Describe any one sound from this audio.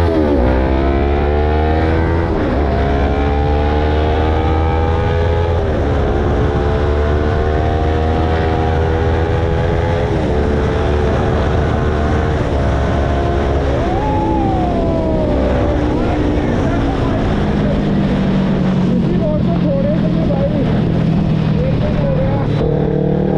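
A motorcycle engine roars close by, rising in pitch as it speeds up and dropping at each gear change.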